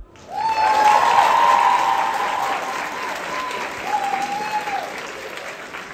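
Young women shriek and cheer excitedly in a large echoing hall.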